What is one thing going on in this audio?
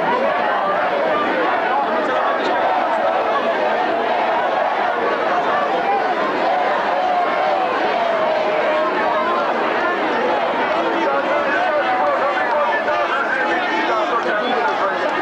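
A large crowd outdoors murmurs and chatters loudly all around.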